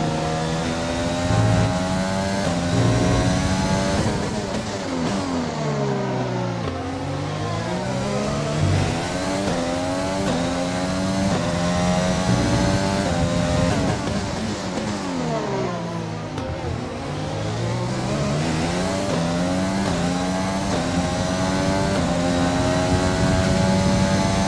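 A racing car engine screams at high revs, dropping in pitch under braking and climbing again through the gears.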